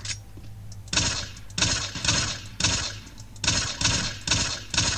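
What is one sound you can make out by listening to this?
A pistol fires a quick series of shots.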